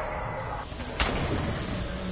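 A loud fiery blast bursts and roars.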